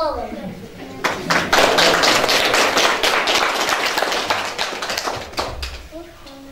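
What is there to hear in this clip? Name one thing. Children clap their hands.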